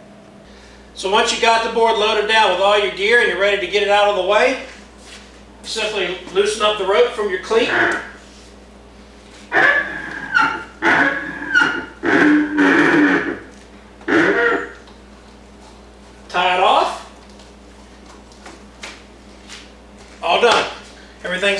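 A middle-aged man talks calmly, close by.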